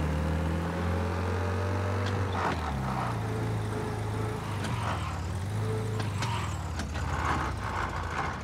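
An old car engine hums steadily as the car drives.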